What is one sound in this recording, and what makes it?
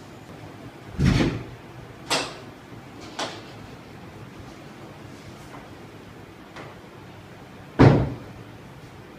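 A heavy wooden board bangs and thuds loudly a few times.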